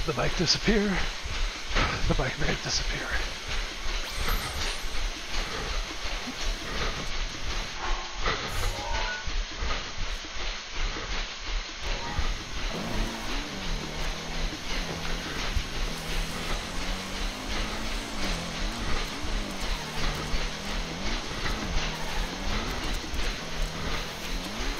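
Feet pound steadily on a running treadmill.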